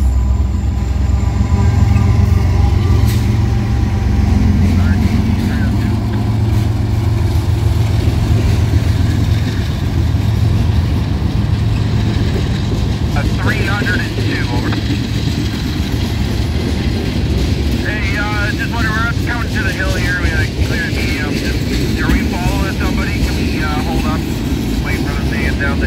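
A freight train rumbles past close by with a loud, steady roar.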